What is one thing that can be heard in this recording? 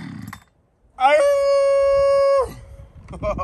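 A chainsaw engine revs briefly at a high, steady pitch.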